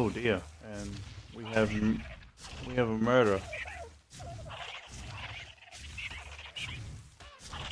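Leaves and grass rustle as someone pushes through them.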